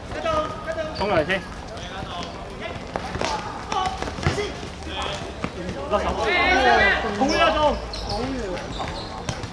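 Young players shout to each other across an outdoor court.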